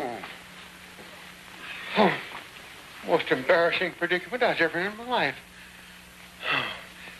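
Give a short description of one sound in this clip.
A woman speaks briefly, close by.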